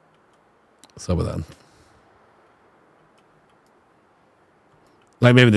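A man speaks briefly and close into a microphone.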